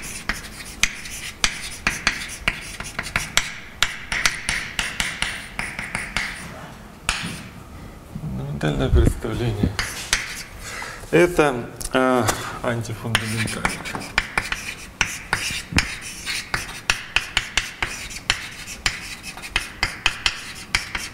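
Chalk taps and scratches on a blackboard in quick bursts.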